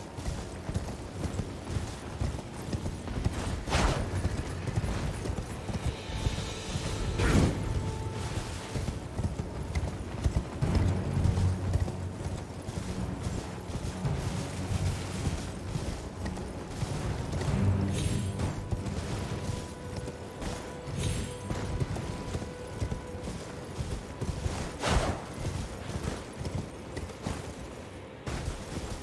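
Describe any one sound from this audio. Hooves gallop steadily over stone and grass.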